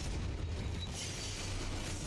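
A magic spell bursts with a bright, glittering shimmer.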